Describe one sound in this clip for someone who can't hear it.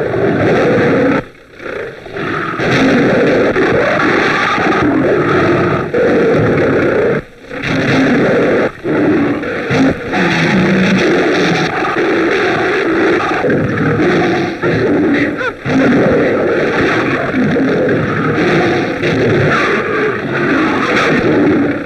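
A tiger roars and snarls.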